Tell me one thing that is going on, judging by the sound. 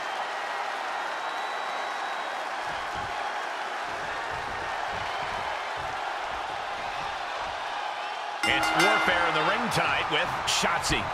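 A large crowd cheers steadily in a big arena.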